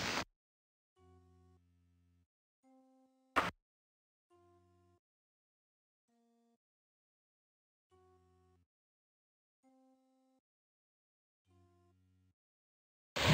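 Soft short electronic tones chime now and then.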